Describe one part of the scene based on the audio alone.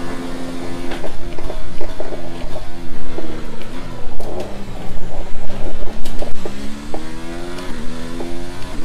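A racing car engine drops in pitch while braking, then revs back up.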